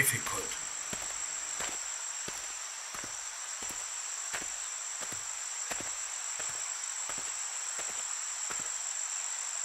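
Soft footsteps pad along at a steady pace.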